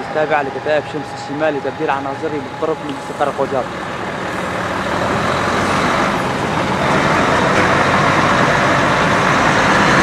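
Heavy truck engines rumble as a convoy drives past close by, growing louder.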